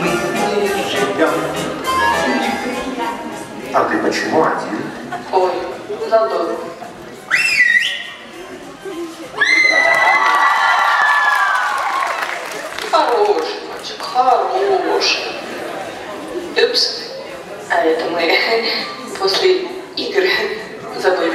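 A young man shouts and talks with animation through a loudspeaker in a large hall.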